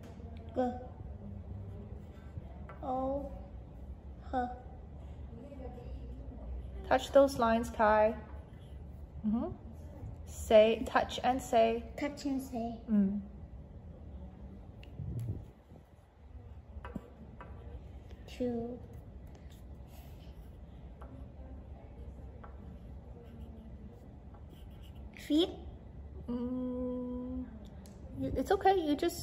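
A young child speaks softly, close by.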